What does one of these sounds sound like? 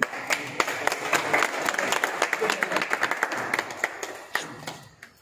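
A crowd applauds with quick, lively clapping.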